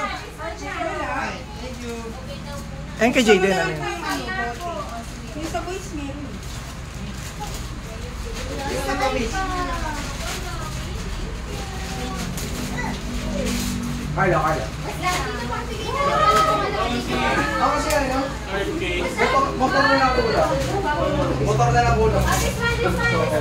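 Several women talk and laugh nearby.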